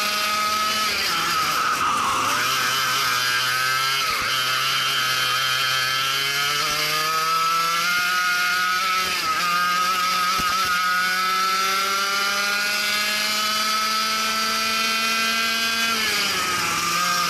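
A go-kart engine buzzes loudly up close, its pitch dropping into corners and rising on the straights.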